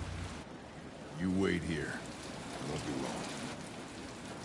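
An older man speaks calmly and briefly.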